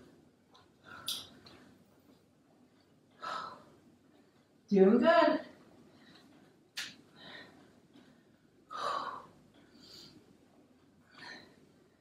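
A woman breathes out hard with effort.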